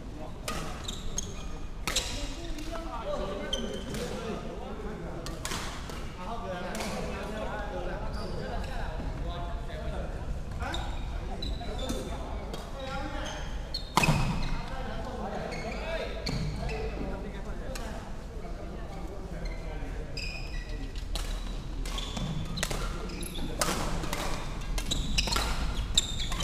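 Sports shoes squeak on a wooden floor.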